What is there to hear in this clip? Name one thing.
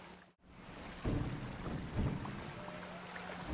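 Water splashes as someone wades through a stream.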